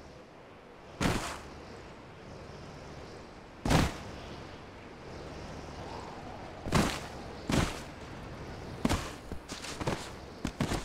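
A body thuds repeatedly against rocks.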